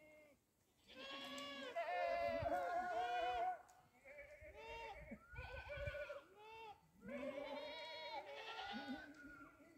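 Goats bleat repeatedly outdoors.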